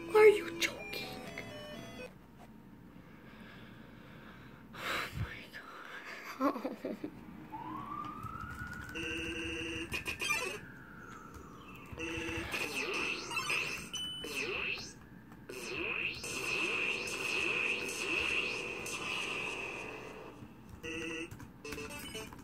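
A video game plays short electronic beeps and chimes.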